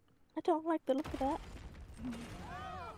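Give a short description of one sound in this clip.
A wall bursts apart with a loud crash.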